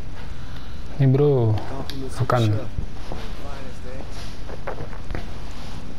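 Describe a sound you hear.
A young man speaks casually, close by.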